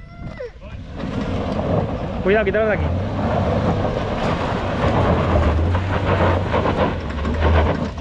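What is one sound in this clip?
Tyres crunch and scrabble over loose gravel.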